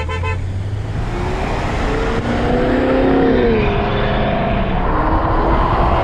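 A car engine revs loudly nearby.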